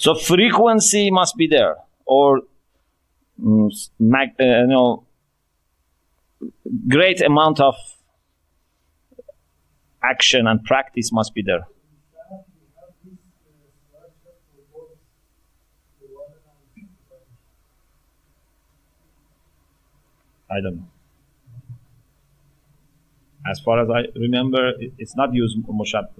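A man speaks with animation into a microphone, close by, with pauses.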